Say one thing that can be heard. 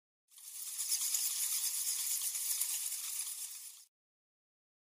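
A flock of bats flutters their wings in a rushing whir.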